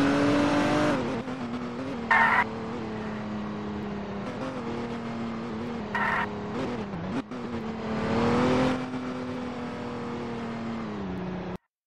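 A car engine hums at a steadier, lower pitch as the car slows.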